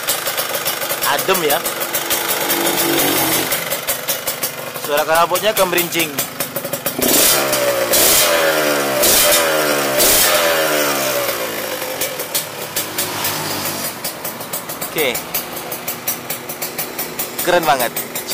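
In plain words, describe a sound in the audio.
A motorcycle engine revs up and down sharply several times.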